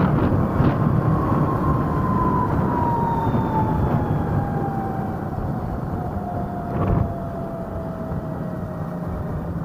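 An electric motor whines and slowly drops in pitch as the ride slows.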